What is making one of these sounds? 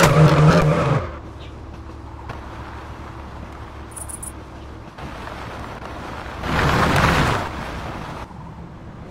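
A car engine idles quietly.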